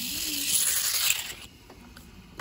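A small rotary tool whirs loudly, then stops.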